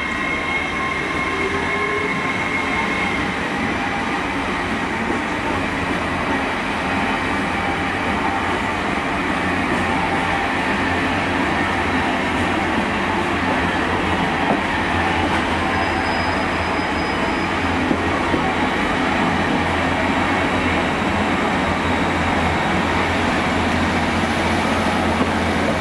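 A train rumbles steadily past on the tracks close by.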